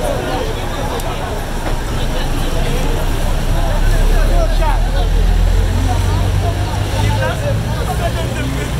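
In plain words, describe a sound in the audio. A heavy truck engine rumbles loudly as the truck passes close by.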